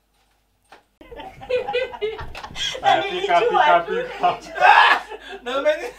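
A young woman laughs and talks with animation nearby.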